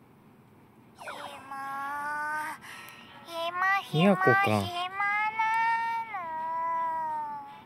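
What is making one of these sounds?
A young girl speaks sleepily and drawls.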